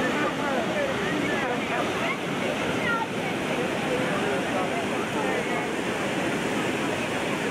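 A crowd of men and children talk and shout nearby.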